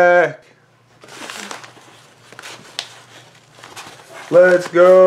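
A paper envelope rustles as it is handled.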